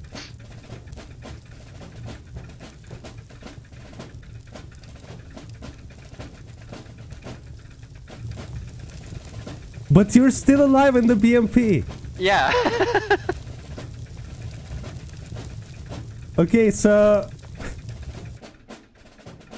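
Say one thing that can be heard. Fire roars and crackles steadily.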